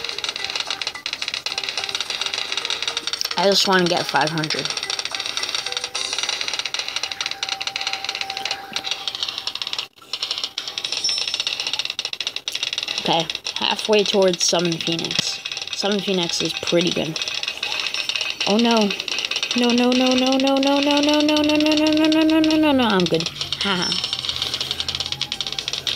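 Video game sound effects crackle with rapid popping and blasts.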